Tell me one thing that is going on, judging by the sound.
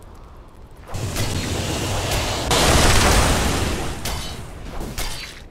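A magic blast roars loudly.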